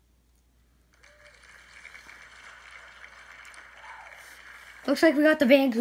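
Applause and cheering play from a small phone speaker.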